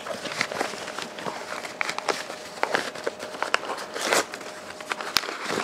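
Paper crinkles and rustles close by.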